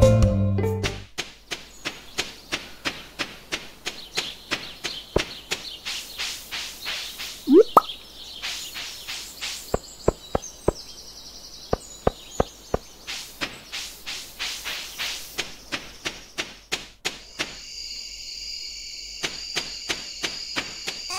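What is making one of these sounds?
Quick footsteps patter steadily along a path.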